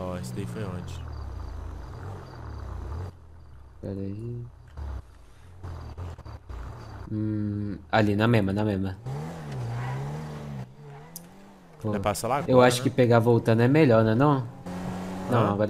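A car engine revs and roars as the car speeds up and slows down.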